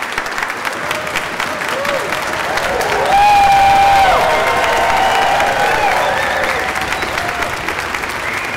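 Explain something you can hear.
People in a crowd cheer and whoop loudly.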